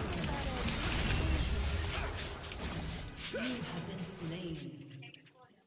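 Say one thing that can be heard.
Game sound effects clash and blast loudly.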